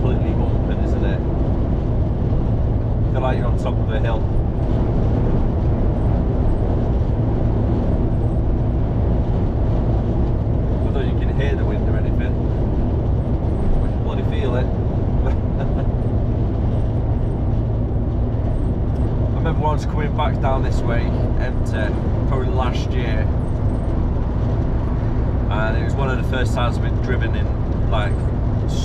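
A vehicle rumbles steadily along a fast road.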